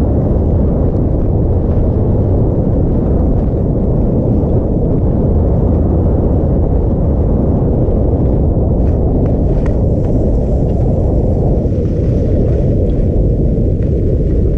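Wind rushes loudly past, as if heard while moving fast outdoors.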